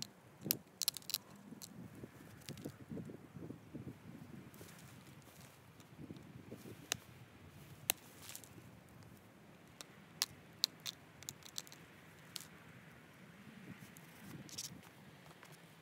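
A stone taps and clicks sharply against a small piece of stone held in a hand.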